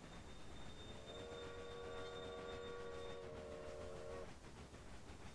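A steam train whistle blows loudly for a few seconds.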